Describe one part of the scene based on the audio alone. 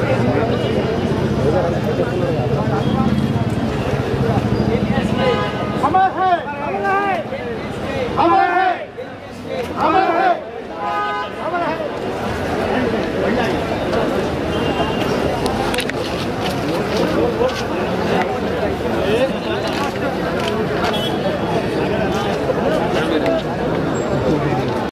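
A crowd of people chatter and call out nearby.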